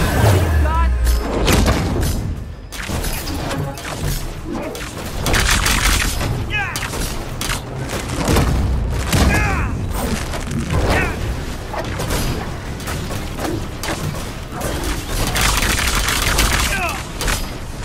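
Punches and blasts crash and thud repeatedly in a fast fight.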